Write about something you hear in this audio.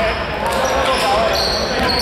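A basketball bounces on the floor as a player dribbles.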